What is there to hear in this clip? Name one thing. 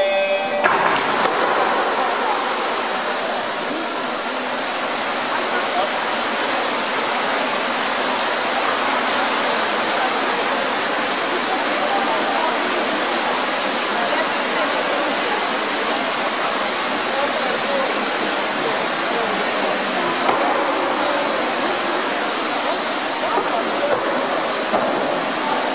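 Swimmers splash and churn the water in a large echoing hall.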